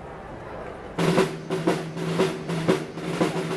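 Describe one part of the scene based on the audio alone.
A brass band starts playing loudly.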